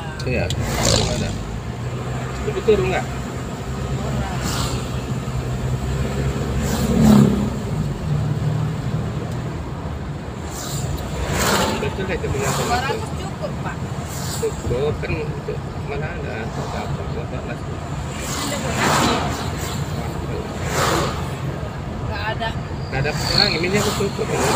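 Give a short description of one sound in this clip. A vehicle's engine hums steadily while driving along a road.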